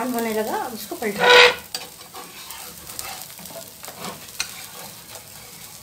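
A metal spatula scrapes across a hot pan.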